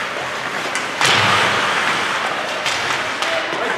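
A hockey stick smacks a puck with a sharp clack.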